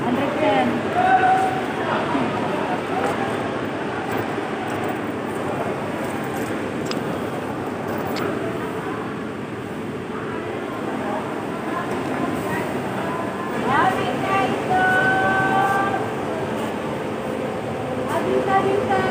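A crowd murmurs and chatters, echoing under a high roof.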